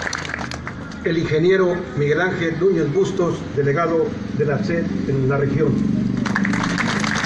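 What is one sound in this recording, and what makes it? A man speaks through a loudspeaker outdoors.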